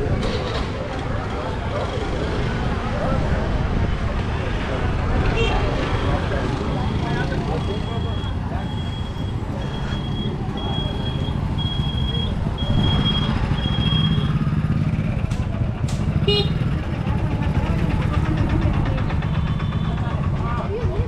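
Auto-rickshaw and motorbike engines hum and putter along a busy street.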